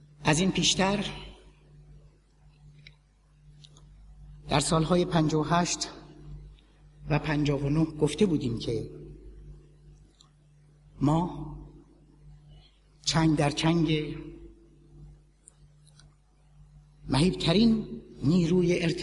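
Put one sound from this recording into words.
A large crowd chants loudly in unison, in short bursts with pauses between them.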